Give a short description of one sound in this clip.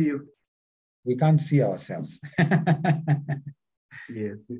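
A man and a woman laugh over an online call.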